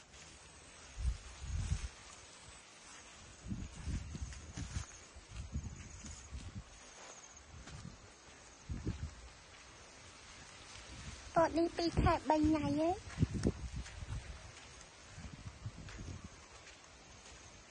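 Wind gusts rustle through tall leafy stalks outdoors.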